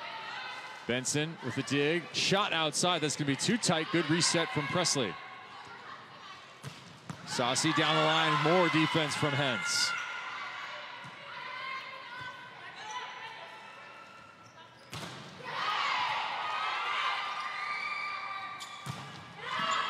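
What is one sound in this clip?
A volleyball is struck hard several times.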